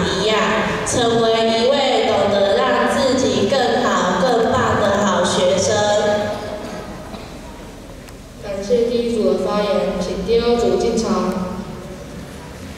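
A young girl speaks loudly through a microphone in an echoing hall.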